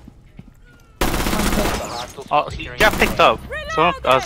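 A rifle fires in bursts.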